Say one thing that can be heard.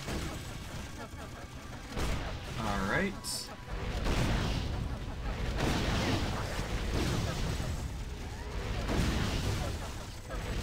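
Fire arrows whizz past in quick streaks.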